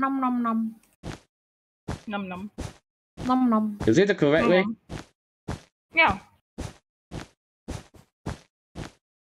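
Blocks are placed one after another with short, even clicks.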